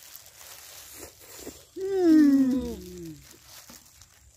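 Women slurp noodles and chew loudly.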